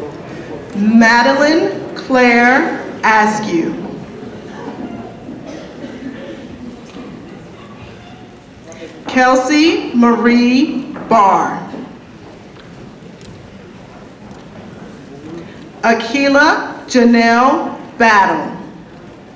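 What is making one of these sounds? A woman reads out names through a loudspeaker in a large echoing hall.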